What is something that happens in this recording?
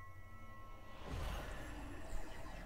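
A burst of magic whooshes and swells.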